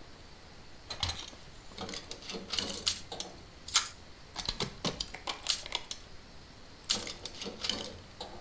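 Small metal lock pins click and tick in quick bursts.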